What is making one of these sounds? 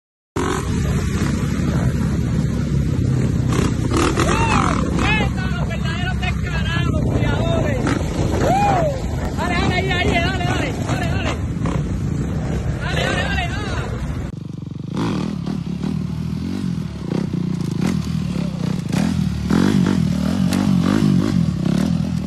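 A dirt bike engine revs loudly, rising and falling in pitch.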